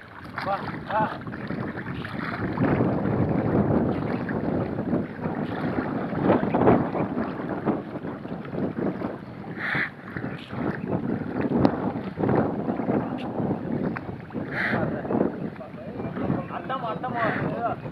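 An animal splashes and thrashes in water.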